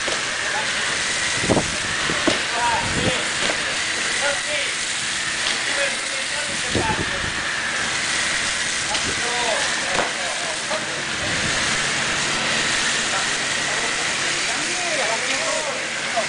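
Water hisses steadily from a fire hose.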